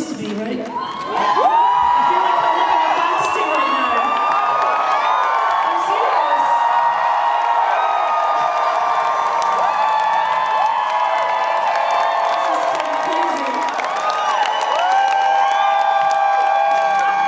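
A young woman sings into a microphone through loudspeakers.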